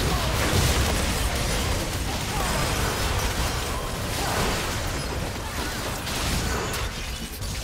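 Magic blasts and whooshing spell effects crash in quick succession.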